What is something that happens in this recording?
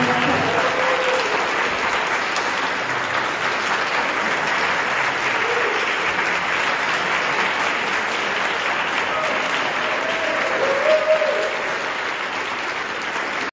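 A crowd applauds steadily in a large echoing hall.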